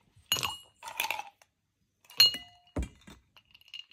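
Ice rattles and clinks in a metal cup.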